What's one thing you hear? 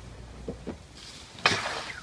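A skateboard crashes into rustling leafy bushes.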